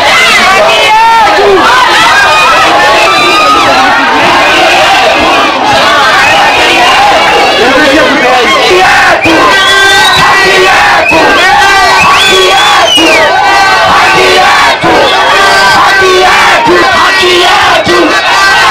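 A large crowd outdoors shouts and chants loudly.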